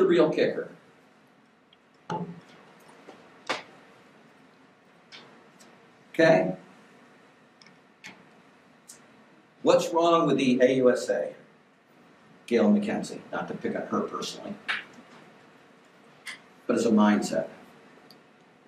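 An elderly man speaks calmly in short bursts with long pauses, heard through a microphone.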